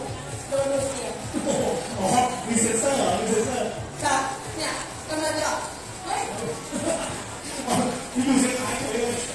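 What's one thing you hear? A woman talks with animation through a microphone and loudspeaker.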